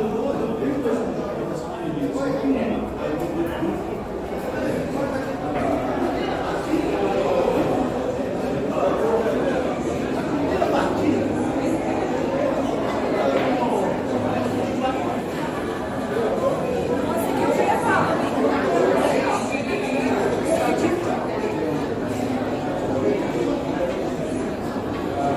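A crowd of men and women chatter in an echoing hall.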